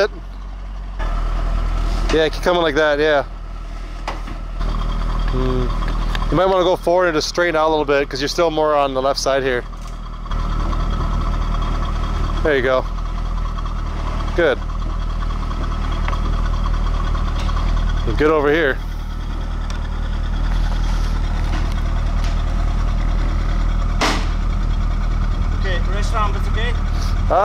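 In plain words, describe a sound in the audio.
A sports car engine idles with a deep, steady rumble close by.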